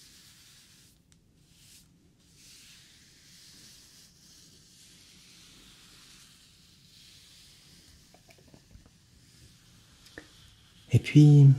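A pencil scratches softly on paper close to a microphone.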